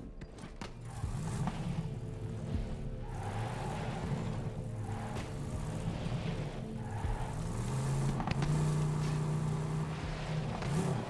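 A vehicle engine revs and roars as it speeds along.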